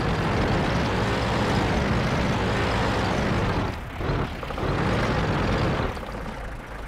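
A tank engine rumbles steadily at close range.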